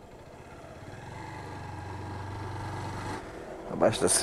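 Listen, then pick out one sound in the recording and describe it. A motorcycle engine rumbles softly at low speed.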